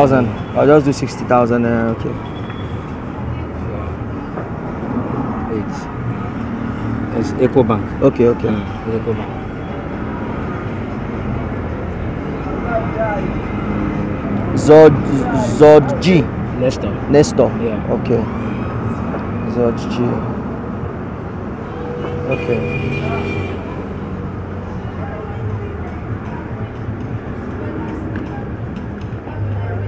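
Young men talk with one another nearby, outdoors.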